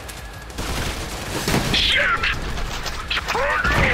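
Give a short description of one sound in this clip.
Shotguns fire in quick blasts.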